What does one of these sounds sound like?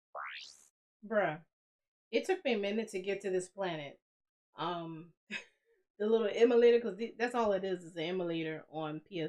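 A young woman talks animatedly and close to a microphone.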